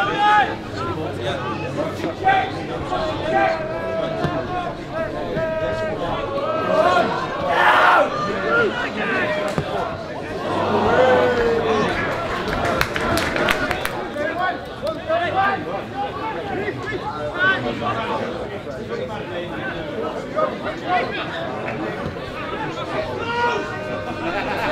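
Footballers shout to each other across an outdoor pitch.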